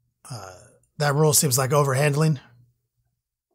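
A man speaks loudly with animation close by.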